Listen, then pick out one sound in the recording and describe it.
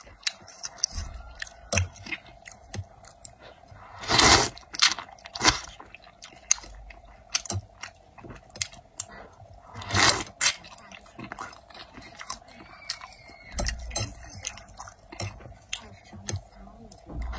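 A young woman chews wetly with smacking sounds, close up.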